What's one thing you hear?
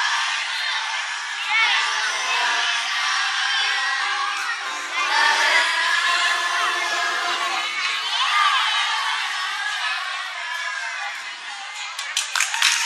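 A choir of young girls sings together outdoors.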